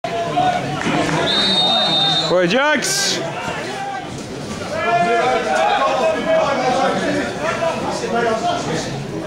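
Men shout and call out across an open outdoor pitch.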